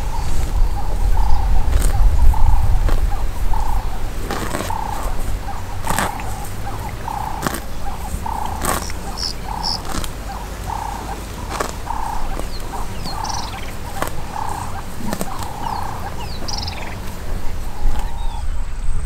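A buffalo tears and munches grass up close.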